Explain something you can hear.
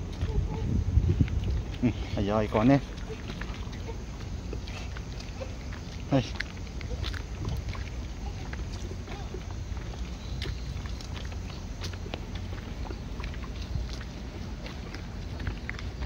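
Small sandals patter on pavement.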